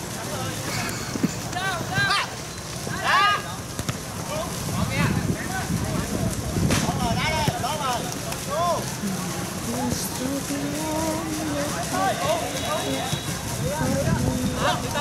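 Young men shout to each other outdoors across an open pitch.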